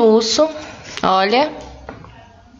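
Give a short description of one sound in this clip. A young woman speaks close to the microphone, with animation.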